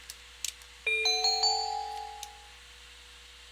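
A short game chime rings out as an item is picked up.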